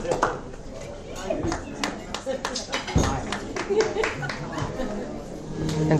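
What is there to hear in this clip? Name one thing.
A crowd of guests chatters and laughs in a lively room.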